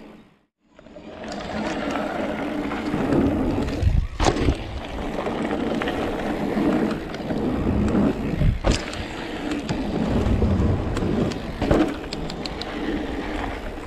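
Bike tyres roll and crunch over a dirt trail.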